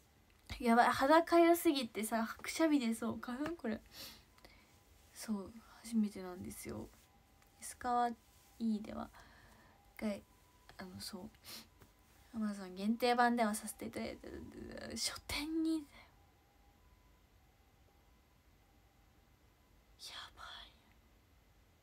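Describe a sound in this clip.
A young woman talks casually and close by, with pauses.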